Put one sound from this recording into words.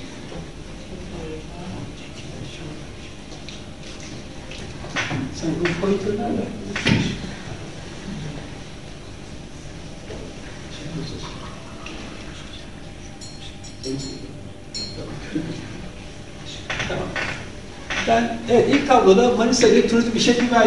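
A man lectures calmly into a microphone in an echoing hall.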